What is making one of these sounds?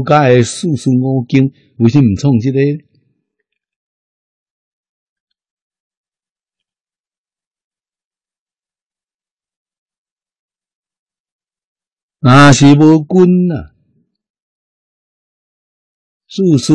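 An elderly man speaks calmly and closely into a microphone, with long pauses.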